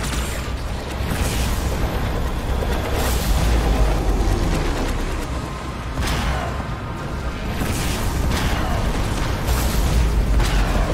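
Energy weapons fire with sharp, crackling bursts.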